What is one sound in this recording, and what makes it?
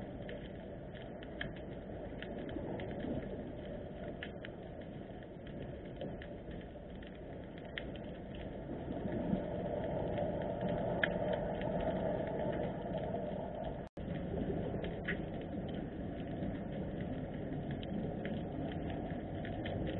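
Water rumbles and hisses in a low, muffled way underwater.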